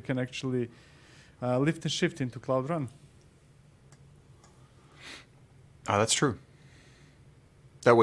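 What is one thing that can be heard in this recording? A middle-aged man speaks calmly and close into a microphone, in short bursts with pauses.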